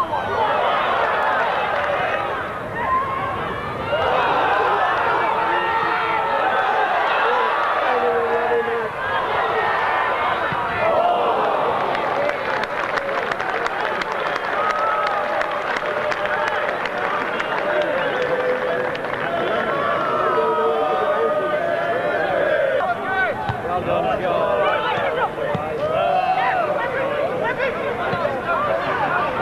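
A crowd of football spectators chatters and shouts outdoors.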